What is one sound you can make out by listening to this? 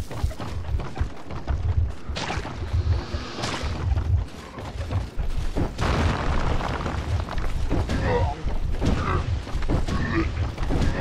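Heavy footsteps thud on creaking wooden planks.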